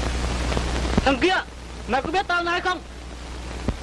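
A young man speaks loudly in a sing-song voice.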